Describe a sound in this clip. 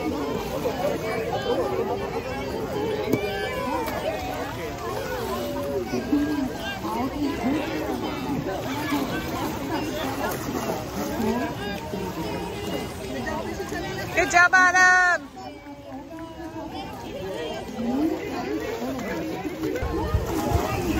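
Children chatter and call out nearby, outdoors.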